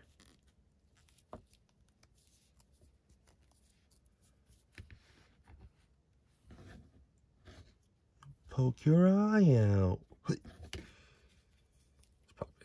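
Plastic joints of a small toy figure click softly as it is posed.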